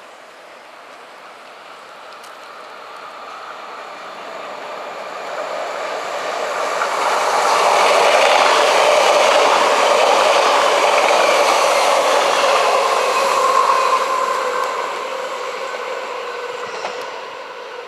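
An electric train approaches and roars loudly past on the rails.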